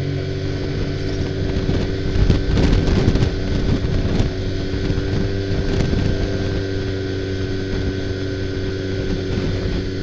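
A snowmobile engine drones steadily up close.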